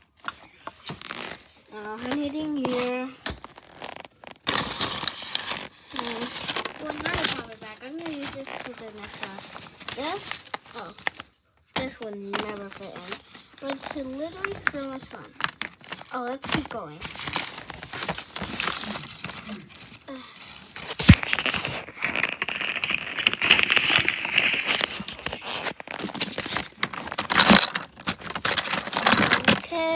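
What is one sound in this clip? Toys and fabric rustle and rattle as a hand rummages through them.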